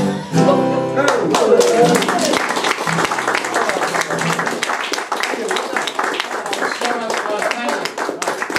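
A man sings along with the guitars.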